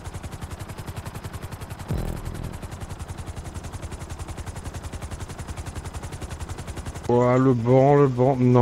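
A helicopter's rotor thumps in a fast, steady beat.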